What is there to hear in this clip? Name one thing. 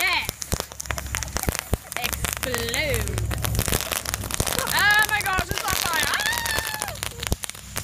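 A firework fountain crackles and pops sharply, close by.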